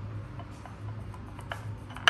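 A spoon scrapes on a porcelain saucer.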